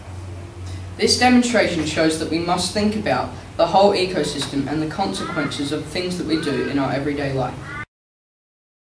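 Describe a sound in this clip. A teenage boy speaks calmly nearby.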